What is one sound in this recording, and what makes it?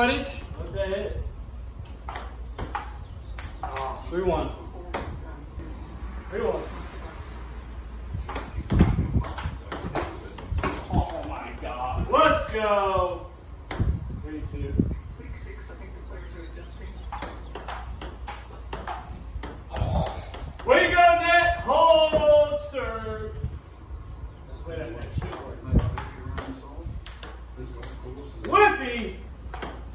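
A ping pong ball clicks quickly back and forth between paddles and a table.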